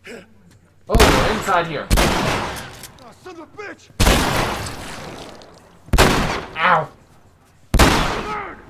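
A pistol fires loud single shots.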